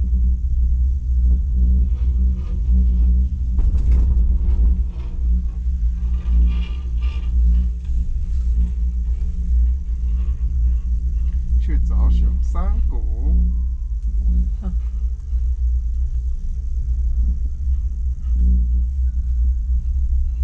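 A snowmobile engine drones steadily up close.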